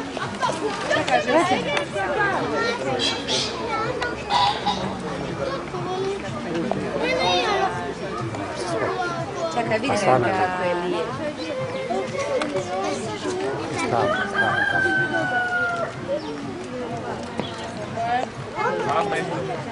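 A peacock shakes its fanned tail feathers with a soft rustling rattle.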